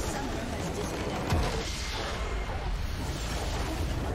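A large structure explodes with a deep blast.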